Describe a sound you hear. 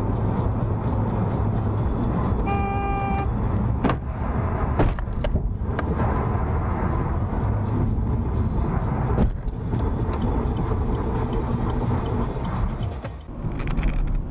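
Rain drums on a car's roof and windscreen.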